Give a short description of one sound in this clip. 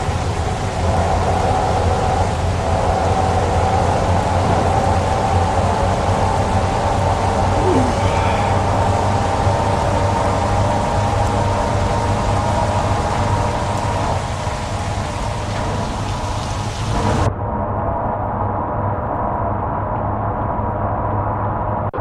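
A truck engine hums steadily as it drives.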